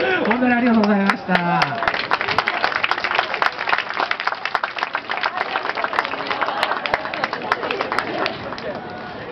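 Several people clap their hands in a quick rhythm.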